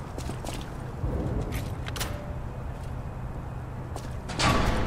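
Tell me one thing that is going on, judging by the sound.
A heavy iron gate rattles and creaks.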